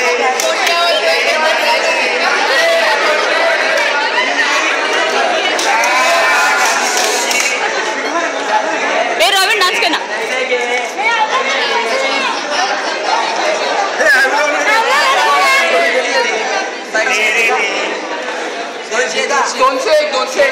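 A crowd of women and men talk loudly over one another close by.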